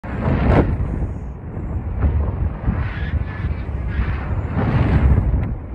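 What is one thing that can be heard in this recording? A man speaks with animation close to a microphone, partly drowned by the wind.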